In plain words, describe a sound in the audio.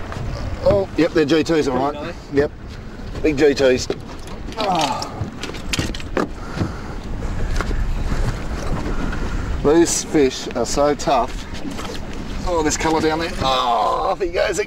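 Water laps against the side of a small boat.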